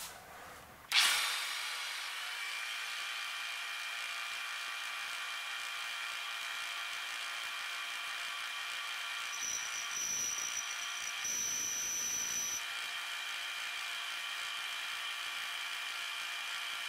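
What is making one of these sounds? A milling cutter whines steadily as it cuts into metal.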